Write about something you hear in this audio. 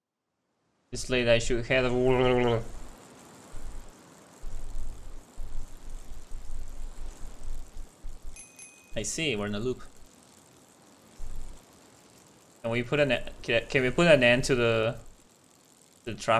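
Bicycle tyres roll over a road.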